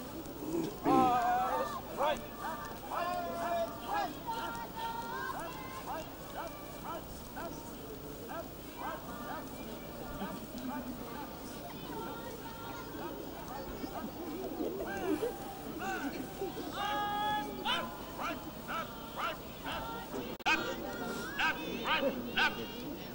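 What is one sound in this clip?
Children's voices chatter and call out nearby, outdoors.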